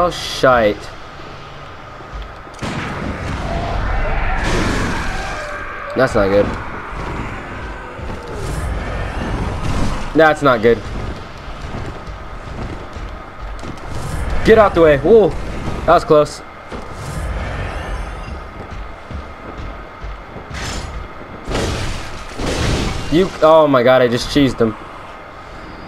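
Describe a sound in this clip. Blades slash and strike hard in a fight.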